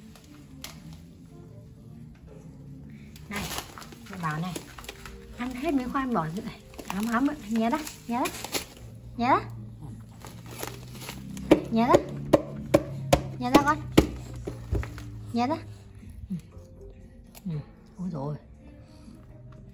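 A plastic snack bag crinkles in small hands.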